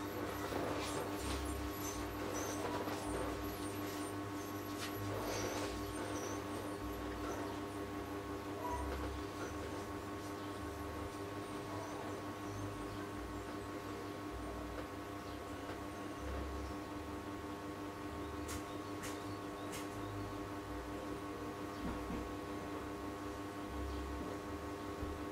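A paintbrush softly brushes across canvas.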